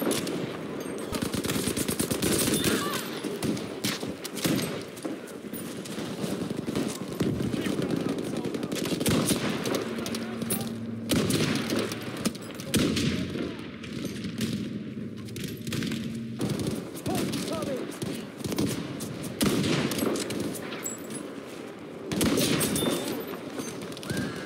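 Rifle shots crack with sharp echoes.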